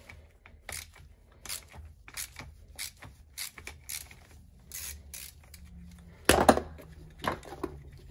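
A hand tool clicks and scrapes against metal in short, repeated bursts.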